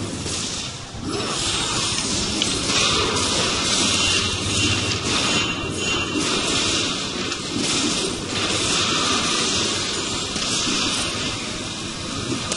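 Game spell effects blast and crackle in a busy fight.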